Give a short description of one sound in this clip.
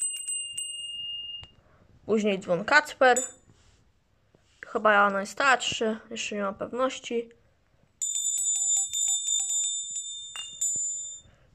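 A small brass bell rings with a clear, ringing tone.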